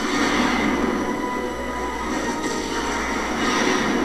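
A fiery explosion roars and rumbles.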